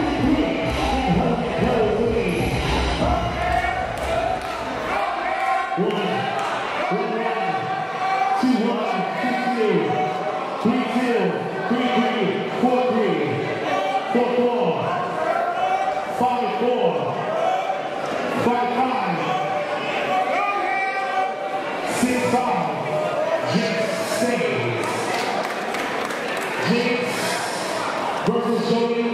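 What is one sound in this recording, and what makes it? A man talks rhythmically over a loudspeaker in a large echoing hall.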